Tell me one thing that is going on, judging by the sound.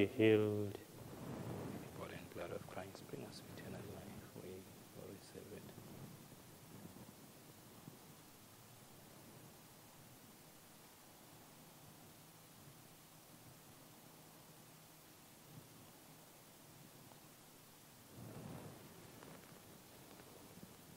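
A man speaks quietly in an echoing hall.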